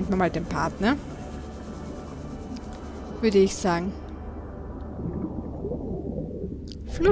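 Water swirls with a low, steady underwater rumble.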